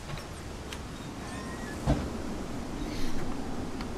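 Glass doors swing open with a thump.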